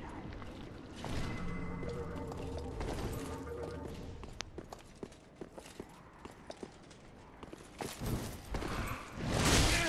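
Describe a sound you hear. Swords swing and strike with sharp metallic hits.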